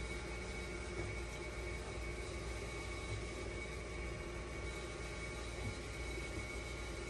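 A finger presses buttons on a dialysis machine.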